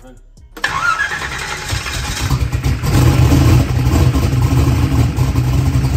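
A big engine starts up with a loud roar and then idles with a heavy, rumbling throb.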